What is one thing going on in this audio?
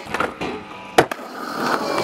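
A skateboard lands with a loud clack.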